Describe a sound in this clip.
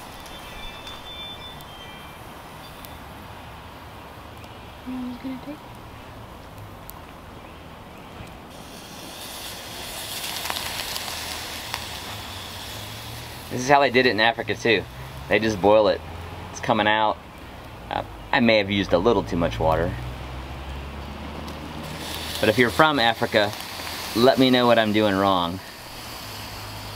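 Flames roar and flicker softly beneath a kettle.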